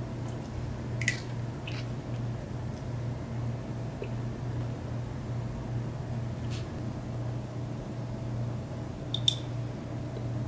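Small metal lighter parts click together in the hands.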